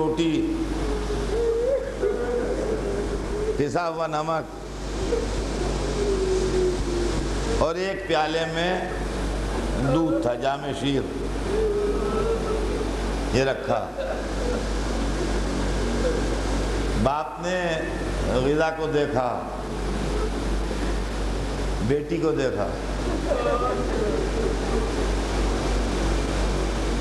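An elderly man speaks with feeling through a microphone, his voice echoing in a hall.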